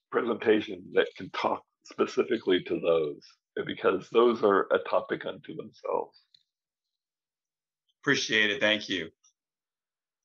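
An elderly man speaks calmly over an online call.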